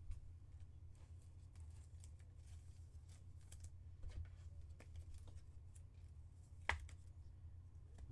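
Plastic card sleeves rustle and click softly.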